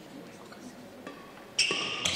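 A racket strikes a shuttlecock with a sharp pop.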